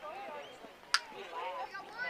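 A metal bat cracks against a ball.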